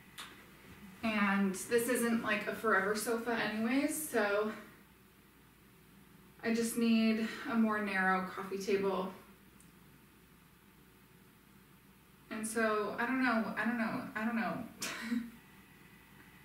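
A young woman speaks calmly and close by, with pauses.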